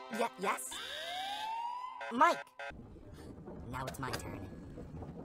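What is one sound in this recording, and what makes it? A boy talks into a phone.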